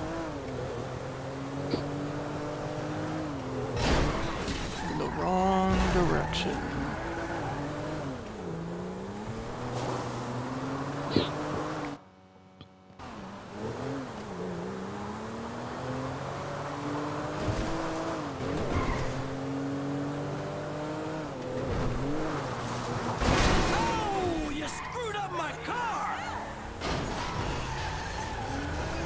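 A car engine revs up and down as it speeds along.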